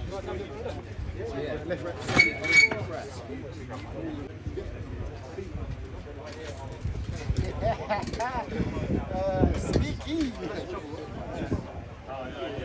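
Several men talk and call out close by, outdoors.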